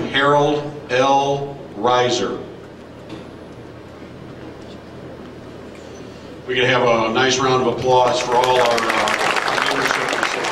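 A man speaks loudly into a microphone over a loudspeaker in a large echoing hall.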